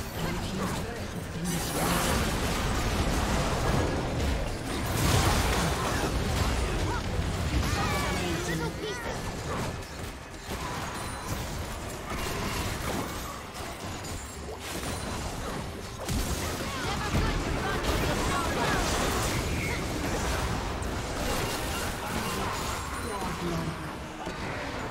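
Game spell effects crackle, whoosh and clash during a fight.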